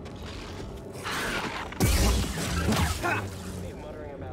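A lightsaber clashes with a crackling burst.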